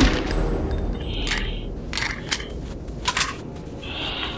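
A gun magazine clicks as it is reloaded.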